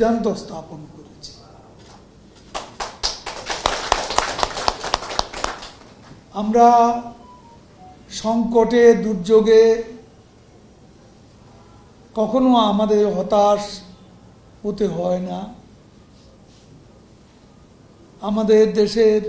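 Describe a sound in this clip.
A middle-aged man speaks into a microphone in short bursts with pauses.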